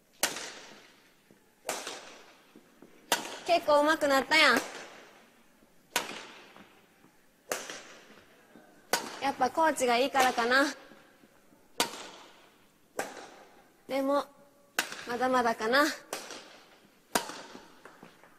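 A shuttlecock is struck sharply with a racket, echoing in a large hall.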